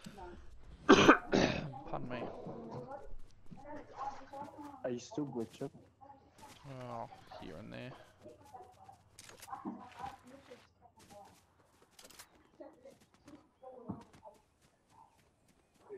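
Footsteps patter quickly on hard ground and grass.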